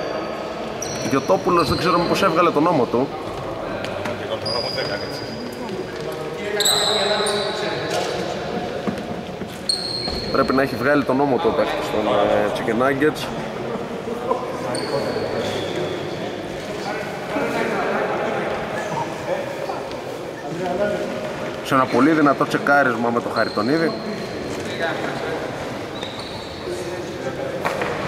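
Men shout and call out across a large echoing gym.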